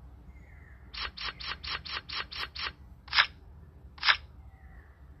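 Playing cards snap down one after another in quick clicks.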